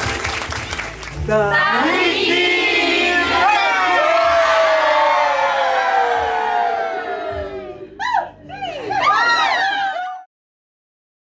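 A large crowd of men and women cheers and shouts loudly.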